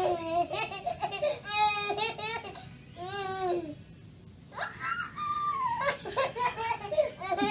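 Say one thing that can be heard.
A baby squeals and babbles excitedly close by.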